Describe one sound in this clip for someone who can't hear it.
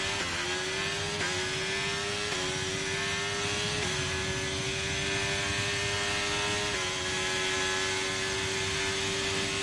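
A racing car engine screams at high revs, jumping in pitch with each gear change.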